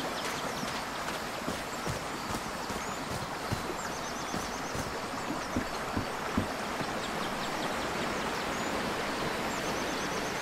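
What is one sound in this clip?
Footsteps tread on a dirt path.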